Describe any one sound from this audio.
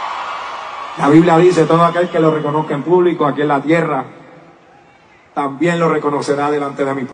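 A man speaks calmly into a microphone, heard over loudspeakers.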